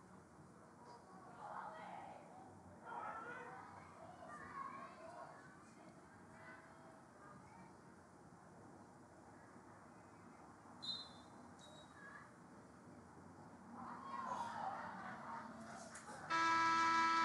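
Players shout to each other outdoors across an open field.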